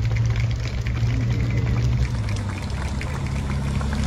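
A motorcycle approaches along the road.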